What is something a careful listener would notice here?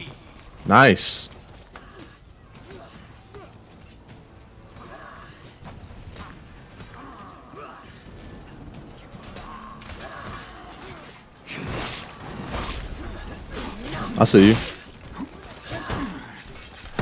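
A young man speaks with animation close to a microphone, at times shouting.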